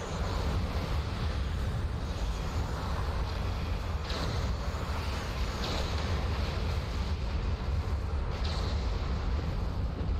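Energy weapons fire and crackle in bursts.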